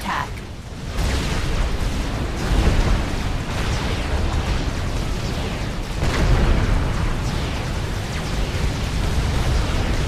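Explosions rumble low and steady.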